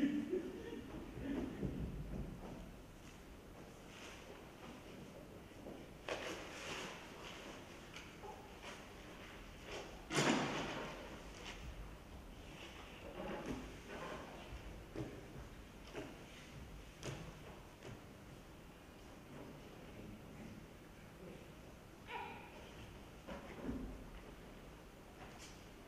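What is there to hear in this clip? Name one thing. Bare feet thump and slide on a wooden stage floor.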